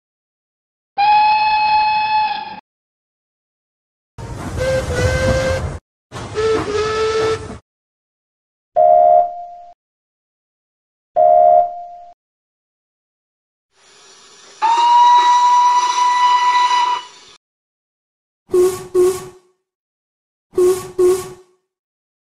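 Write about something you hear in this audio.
A steam locomotive's whistle blows several times, in short and long blasts.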